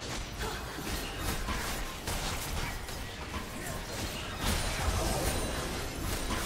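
Magic spells whoosh and crackle in a fast fantasy battle.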